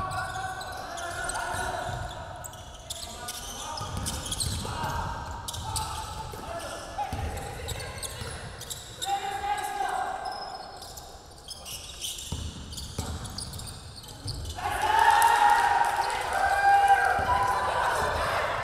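Young men shout to each other across an echoing hall.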